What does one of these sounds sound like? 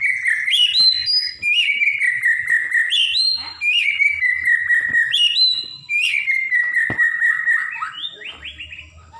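A caged bird sings loud, clear whistling phrases close by.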